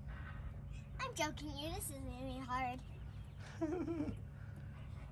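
A young child talks and squeals nearby.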